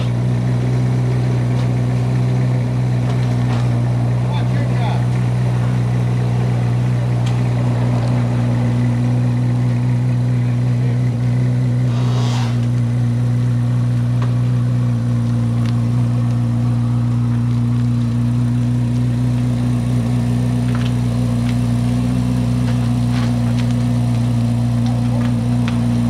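A flat-plane-crank V8 sports car idles with a steady, even burble.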